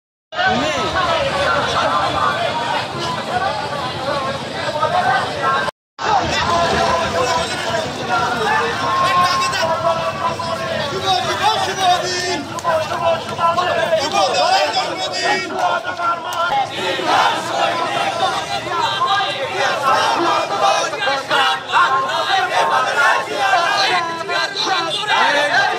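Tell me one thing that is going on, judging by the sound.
A crowd of men chants slogans loudly outdoors.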